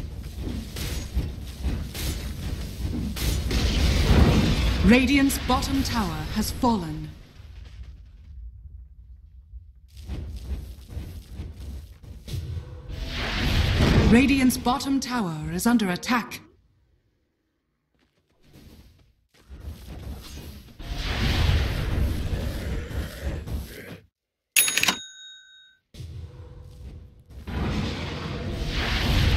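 Fiery spells whoosh and burst in a video game battle.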